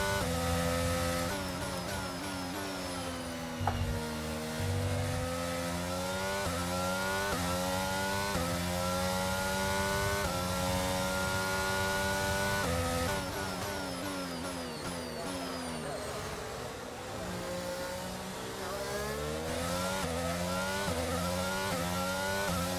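A racing car engine screams, rising in pitch and dropping sharply with each gear change.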